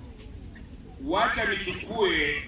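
A man speaks loudly through a microphone and loudspeakers outdoors.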